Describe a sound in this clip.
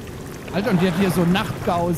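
A torch fire crackles and flickers.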